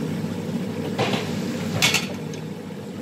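A metal ladle clanks against a pan.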